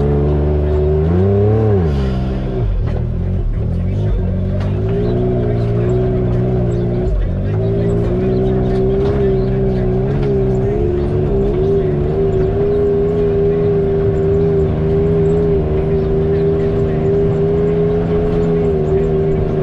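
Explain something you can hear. An off-road vehicle's engine hums and revs up and down close by.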